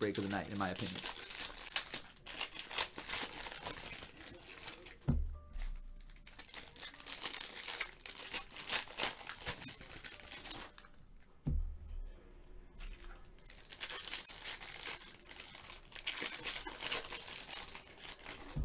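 Foil wrappers crinkle and rustle as hands tear them open.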